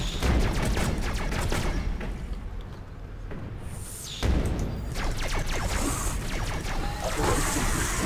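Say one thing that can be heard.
A weapon fires rapid crackling energy blasts.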